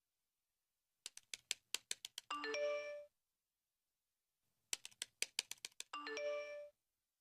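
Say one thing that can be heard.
Phone keys tap rapidly.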